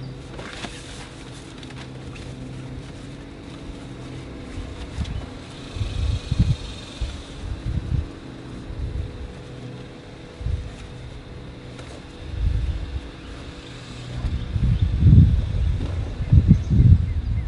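A sunshade rustles and crinkles as a man unfolds it.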